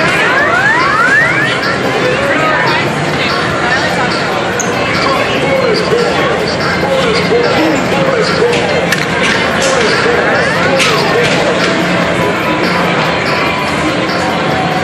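Arcade machines beep and play electronic jingles all around.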